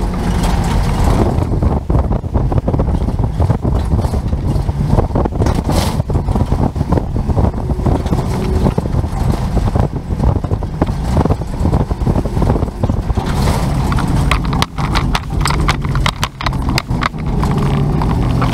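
Wind rumbles and buffets against a moving microphone.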